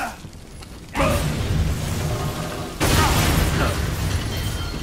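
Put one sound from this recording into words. A loud blast of fire bursts out.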